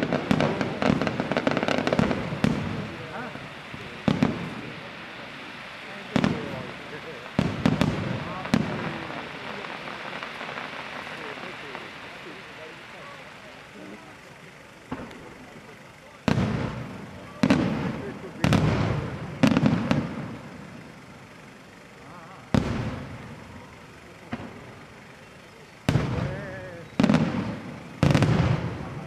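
Fireworks crackle and fizz after the bursts.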